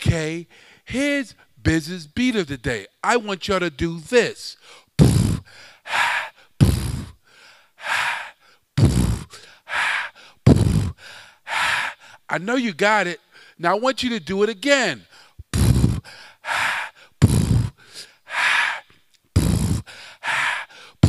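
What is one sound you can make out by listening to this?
A man beatboxes into a microphone with deep thumping beats and hissing sounds.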